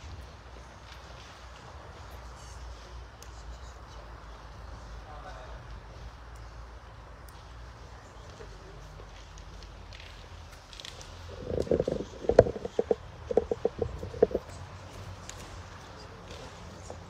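Footsteps tap softly on a hard floor.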